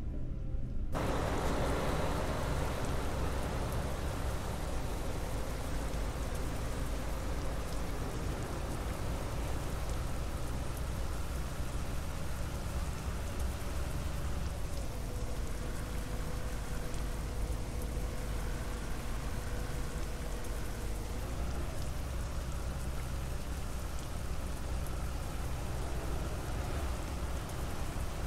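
Tyres roll on the road.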